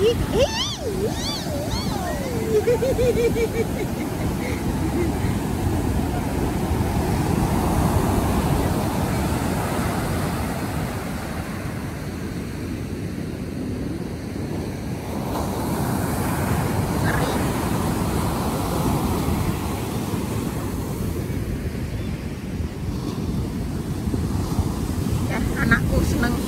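Ocean waves crash and wash up onto the shore.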